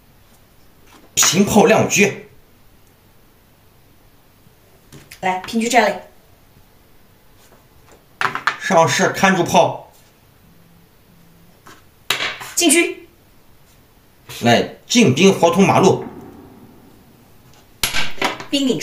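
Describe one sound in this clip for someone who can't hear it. Plastic game pieces clack down on a board.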